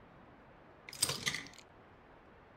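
A small appliance door clicks open.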